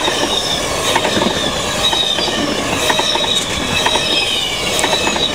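Train wheels squeal with a high steady whine.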